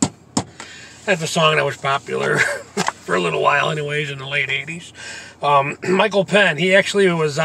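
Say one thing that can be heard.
A man sings loudly and emotionally, close by.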